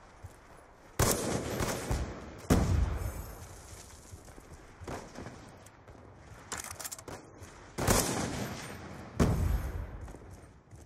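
A sniper rifle fires loud booming shots in a video game.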